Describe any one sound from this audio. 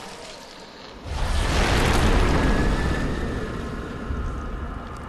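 A huge monster roars with a deep, rumbling growl.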